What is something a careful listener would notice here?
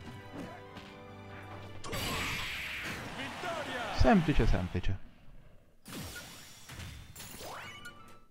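Cheerful video game music plays.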